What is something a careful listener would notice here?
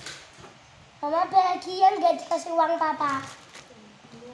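A young girl speaks loudly and with animation close by.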